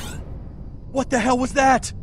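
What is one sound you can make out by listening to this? A young man asks a short, startled question, close by.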